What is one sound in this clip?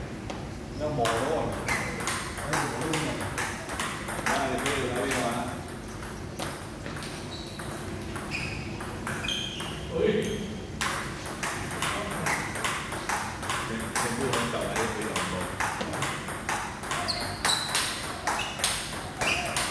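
A ball clicks back and forth in a quick table tennis rally.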